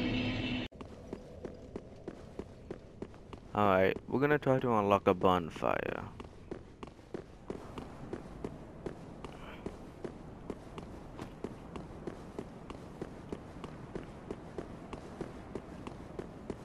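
Armored footsteps clatter quickly on stone.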